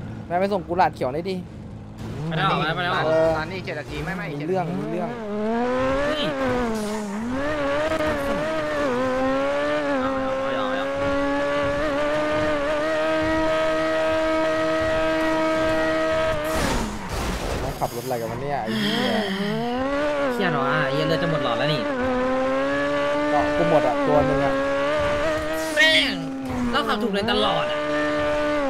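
A sports car engine roars and revs up and down as it speeds along.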